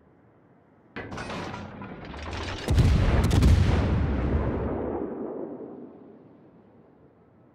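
Heavy guns fire a loud booming salvo that rumbles and slowly fades.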